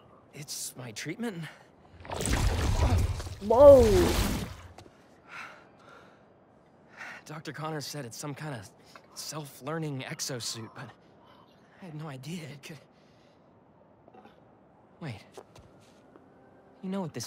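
A young man speaks hesitantly, up close.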